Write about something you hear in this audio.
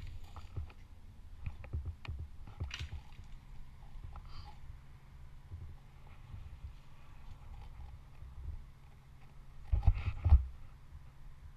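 Branches creak and knock as a climber grips and moves along them.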